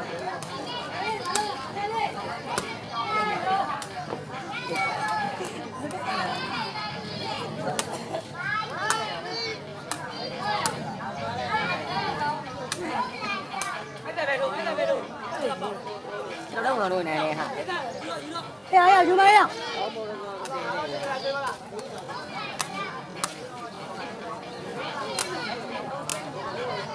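A crowd of onlookers chatters and calls out outdoors.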